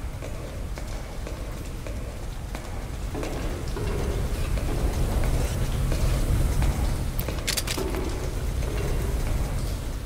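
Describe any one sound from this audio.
Soft footsteps shuffle on a hard floor.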